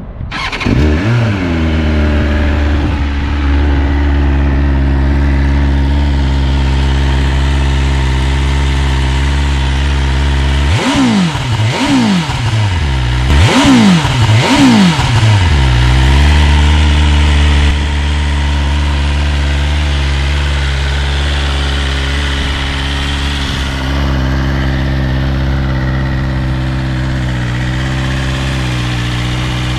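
A motorcycle engine idles with a steady low rumble close by.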